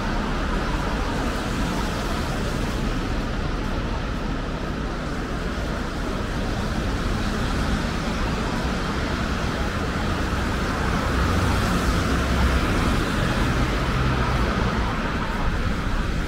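Footsteps crunch on slushy pavement.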